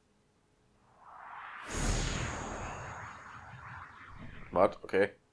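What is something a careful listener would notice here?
A powerful magical blast bursts with a deep rumble and crackling, then slowly fades.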